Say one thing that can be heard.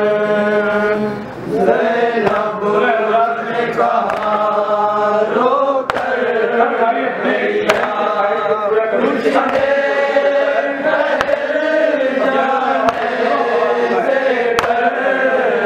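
A man chants a melodic recitation into a microphone, heard through loudspeakers.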